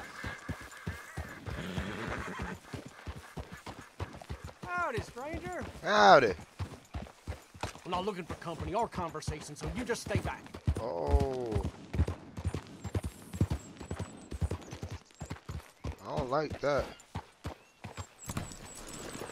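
Horse hooves clop on a dirt trail.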